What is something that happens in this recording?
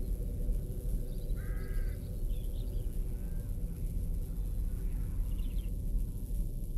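Birds call faintly in the distance.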